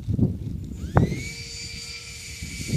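A model plane engine revs up sharply on the ground.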